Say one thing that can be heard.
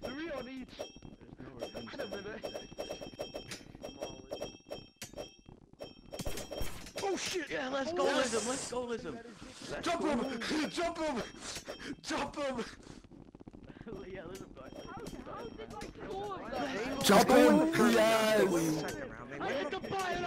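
Swords clash and clink in a fight.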